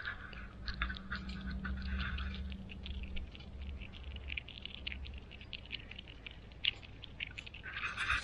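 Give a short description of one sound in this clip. A chipmunk cracks sunflower seed shells with small crisp clicks.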